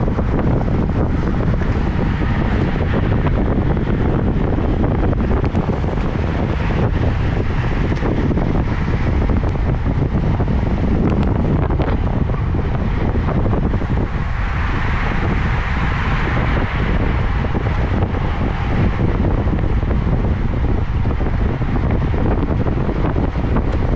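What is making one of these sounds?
Wind rushes loudly past, as if riding fast.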